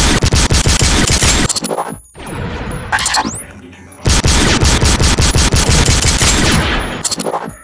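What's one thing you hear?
An automatic gun fires in rapid bursts.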